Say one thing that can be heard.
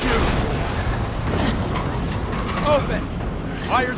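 A heavy metal door rumbles as it slides open.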